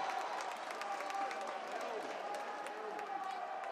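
A volleyball thuds against hands and the floor.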